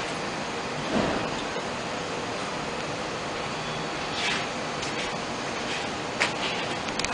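A subway train rolls along the tracks with clicks and clatter.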